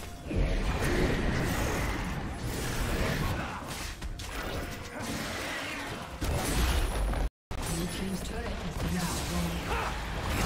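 Magic spells crackle and whoosh in a busy battle.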